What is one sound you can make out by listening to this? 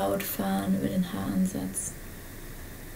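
A young woman speaks calmly and softly into a nearby microphone.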